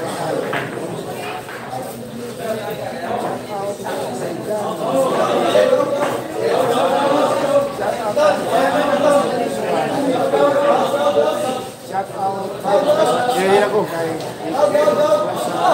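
Billiard balls clack together as they are racked.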